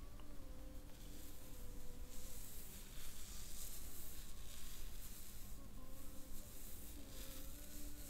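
Fingers rub and rustle through hair close by.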